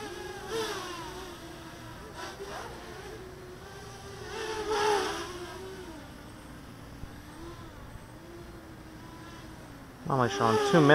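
A small racing quadcopter's propellers whine as it flies overhead, the pitch rising and falling with the throttle.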